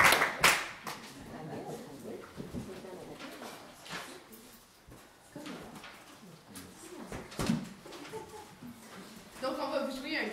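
A woman speaks to the audience.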